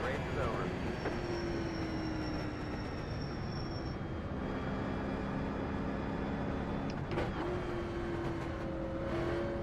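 A race car engine roars steadily from inside the cockpit.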